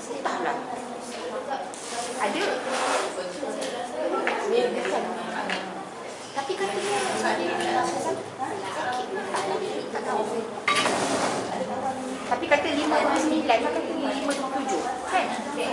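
A woman speaks calmly into a microphone, heard through a loudspeaker in an echoing room.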